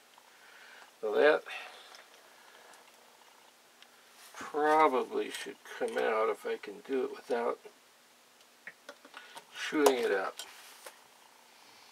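An elderly man talks calmly close by.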